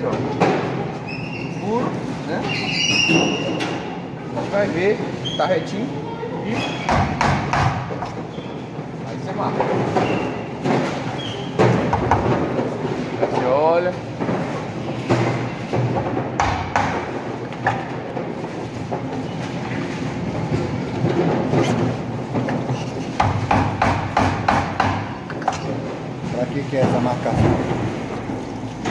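A hammer taps sharply on a metal frame.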